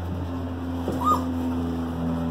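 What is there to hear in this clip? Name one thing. A puppy gives a short, high whimper.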